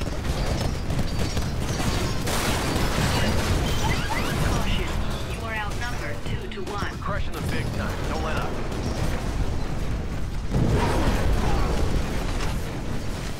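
Explosions blast and rumble.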